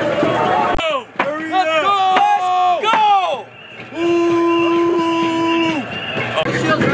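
A young man shouts loudly nearby.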